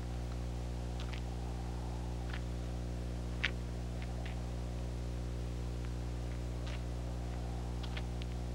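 Footsteps scuff on dry dirt close by.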